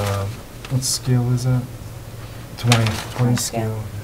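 Paper rustles on a table.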